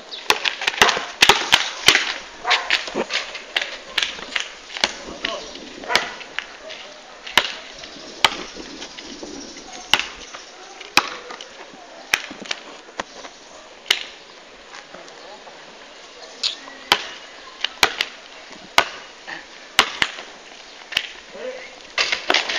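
A basketball bounces sharply on a hard outdoor court.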